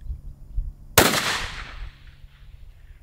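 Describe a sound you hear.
A rifle fires a single loud shot that echoes outdoors.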